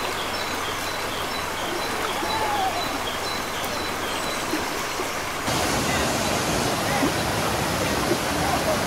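A waterfall roars steadily, splashing over rocks.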